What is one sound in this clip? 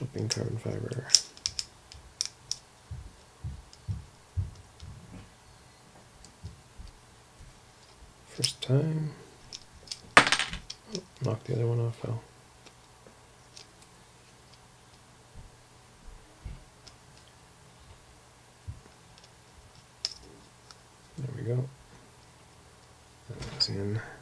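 Small hard parts click and tap together.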